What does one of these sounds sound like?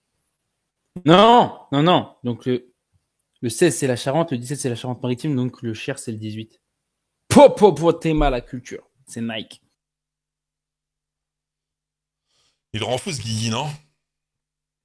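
A man talks with animation through a microphone, heard as if on a video call.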